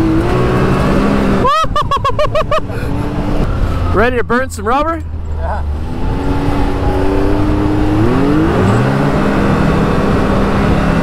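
Wind rushes past in an open vehicle.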